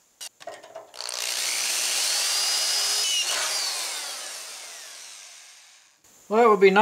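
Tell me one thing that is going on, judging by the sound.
An electric drill whirs as it bores into metal, then winds down.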